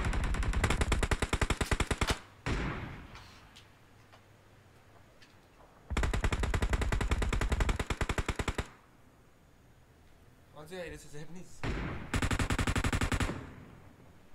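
Rapid bursts of gunfire ring out in short volleys.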